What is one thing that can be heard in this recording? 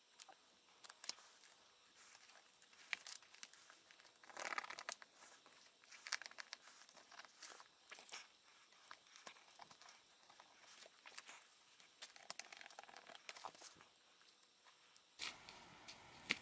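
Paper and a book cover rustle and crinkle as hands handle them.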